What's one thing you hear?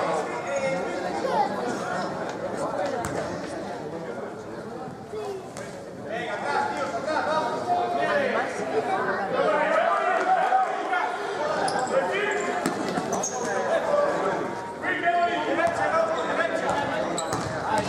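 A crowd talks and murmurs in a large echoing hall.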